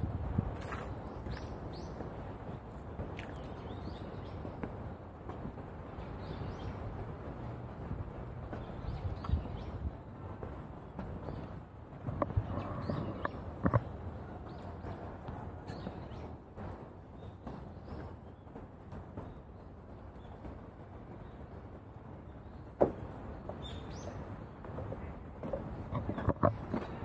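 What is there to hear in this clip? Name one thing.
Footsteps thud softly on a wooden walkway outdoors.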